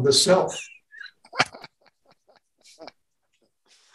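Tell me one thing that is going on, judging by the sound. An elderly man laughs over an online call.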